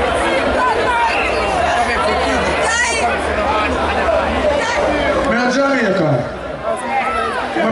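A live band plays loud music through large loudspeakers outdoors.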